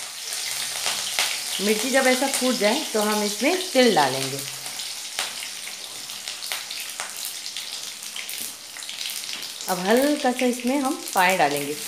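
Food sizzles and crackles in hot oil.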